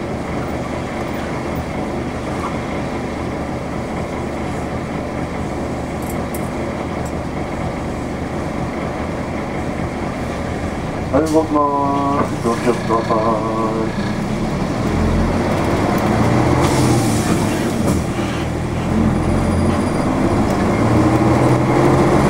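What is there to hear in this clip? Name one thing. A vehicle engine hums steadily up close.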